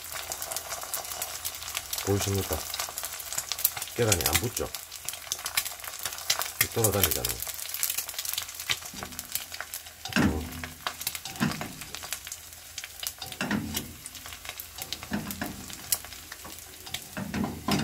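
A metal wok clunks on a gas burner as it is tilted and swirled.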